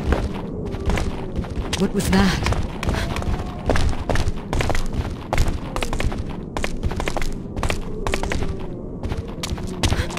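Footsteps tap quickly on hard stone steps.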